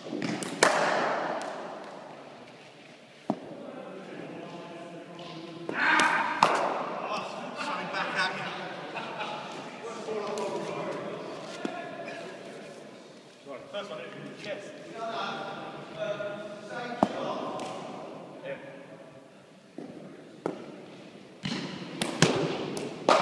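A cricket ball cracks off a bat, echoing around a large hall.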